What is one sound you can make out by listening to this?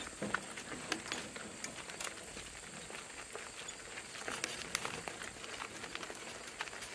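Hooves clop steadily on a gravel track.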